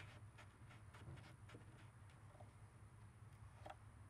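Fingers tap and press against a wooden panel with small knocks.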